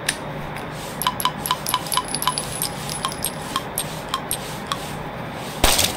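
A revolver cylinder clicks as bullets are loaded.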